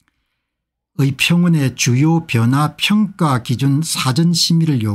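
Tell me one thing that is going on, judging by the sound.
A middle-aged man speaks steadily and clearly into a close microphone.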